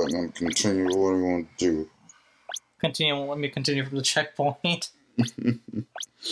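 A game menu beeps as a cursor moves between options.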